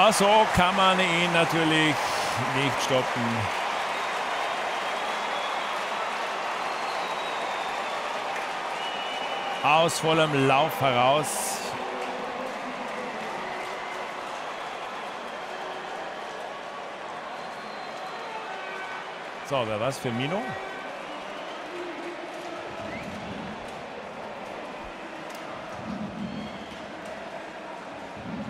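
A large stadium crowd cheers loudly, and the roar slowly dies down.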